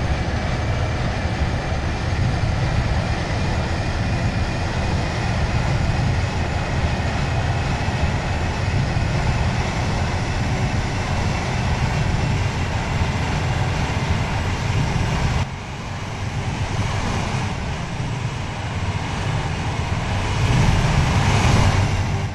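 A train rumbles steadily along the tracks at speed.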